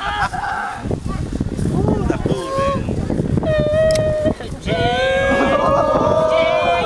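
A group of young men cheer and laugh loudly.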